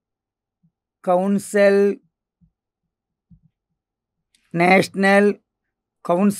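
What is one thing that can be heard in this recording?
A middle-aged man speaks calmly and slowly into a close microphone, in short phrases.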